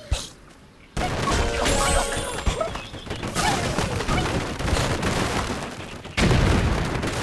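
Wooden blocks crash and tumble down.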